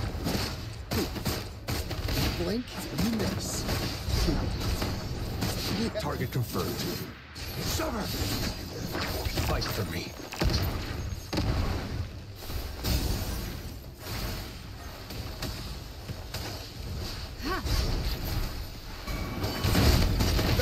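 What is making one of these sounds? Sword slashes and magic blasts whoosh and crash in quick bursts.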